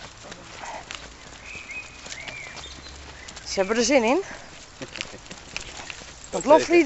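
Dogs' paws patter softly on a paved path.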